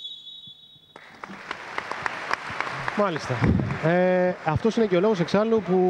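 Players clap their hands.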